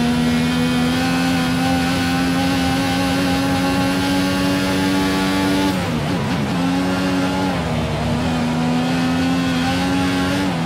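A racing car engine screams at high revs, dropping sharply on downshifts before climbing again.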